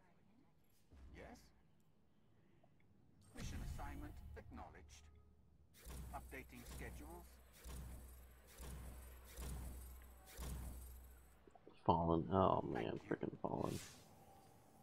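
Game menu sounds chime and whoosh as selections are made.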